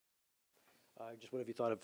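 A man speaks calmly into a microphone at close range.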